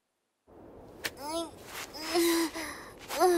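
A young woman speaks softly and expressively.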